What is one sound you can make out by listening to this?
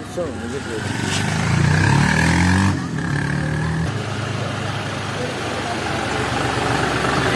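A tractor engine chugs nearby.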